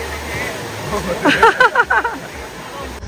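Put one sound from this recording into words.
People shout and call out over the water.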